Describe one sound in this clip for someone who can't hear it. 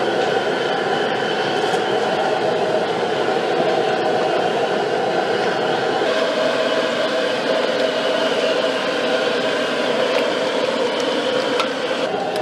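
A gas burner roars under a wok.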